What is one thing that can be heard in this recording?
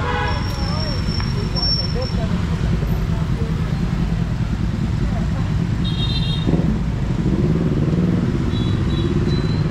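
Motorbikes rev as they ride past close by.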